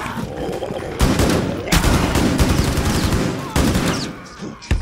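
An automatic rifle fires.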